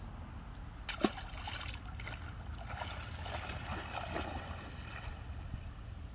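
A large bird splashes and flaps its wings on the water nearby.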